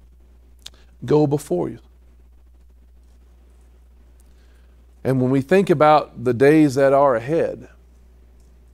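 A middle-aged man speaks in short bursts through a microphone.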